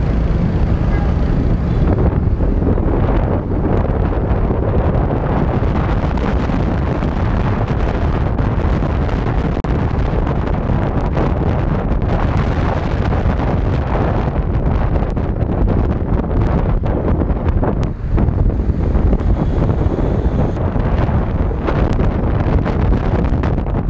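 Wind roars loudly past a moving motorbike.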